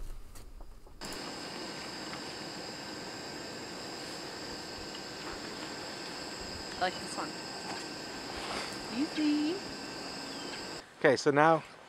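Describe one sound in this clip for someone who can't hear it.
A camping stove burner hisses steadily.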